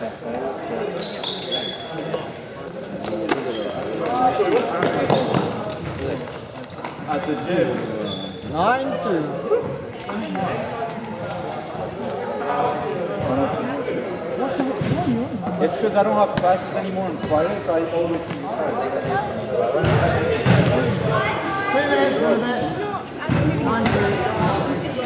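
Young people talk and call out across a large echoing hall.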